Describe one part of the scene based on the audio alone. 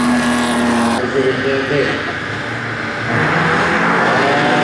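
Many car engines idle and rev together at a start line.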